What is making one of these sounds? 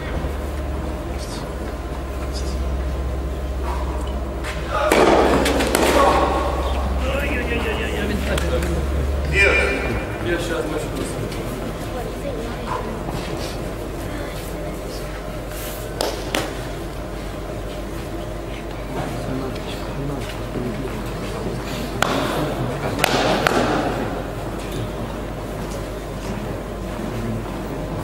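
A tennis ball is struck with a racket, its hits echoing in a large hall.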